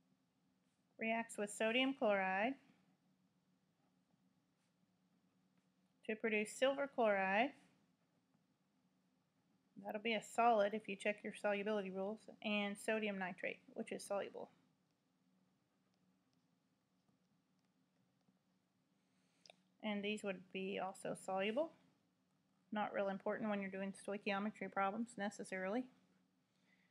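A woman speaks calmly into a nearby microphone, in short bursts with pauses.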